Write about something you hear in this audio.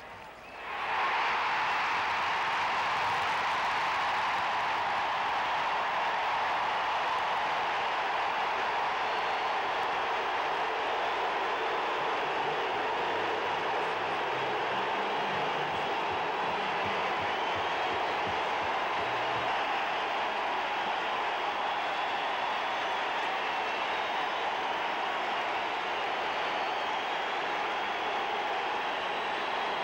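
A large crowd cheers and roars loudly in a big echoing stadium.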